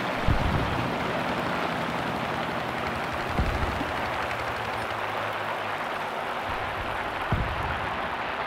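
Flak shells burst with dull booms.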